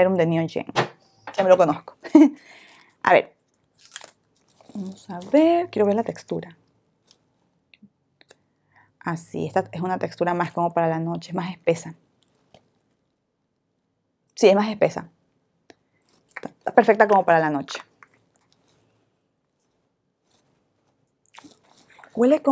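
A young woman talks calmly and closely into a microphone, with pauses.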